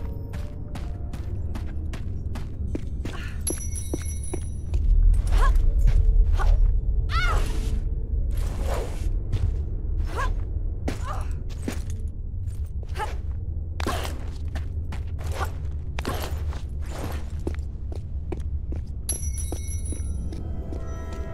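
Quick footsteps run across stone.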